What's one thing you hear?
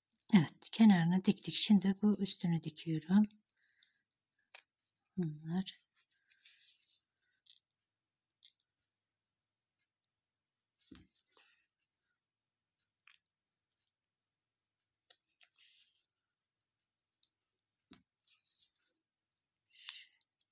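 Yarn rustles softly as a needle draws it through crocheted stitches.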